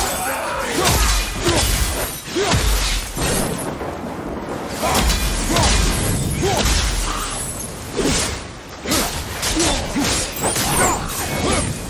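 Heavy blows thud and crunch against enemies.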